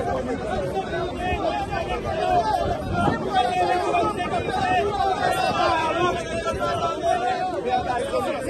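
A crowd of men talks and shouts over one another outdoors.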